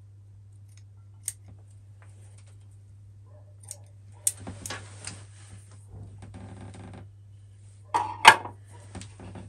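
Pruning shears snip small branches.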